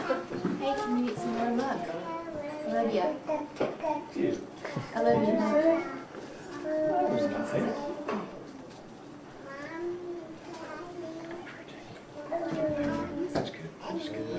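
A young woman talks softly and coaxingly close by.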